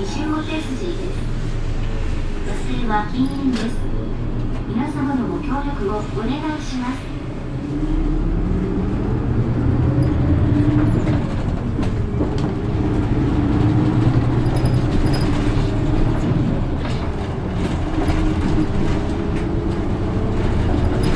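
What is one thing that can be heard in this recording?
A tram's motor hums and whines steadily while the tram moves.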